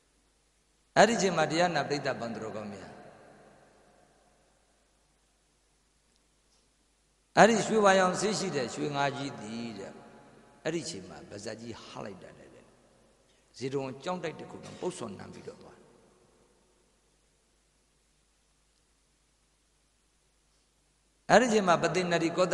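A middle-aged man speaks slowly and calmly into a microphone, in bursts with long pauses, his voice ringing through a loudspeaker with echo.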